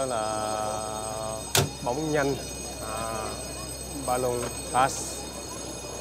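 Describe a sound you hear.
A young child calls out in a high voice.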